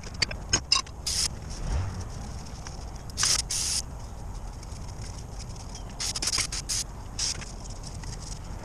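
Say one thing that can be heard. An aerosol can hisses in short sprays.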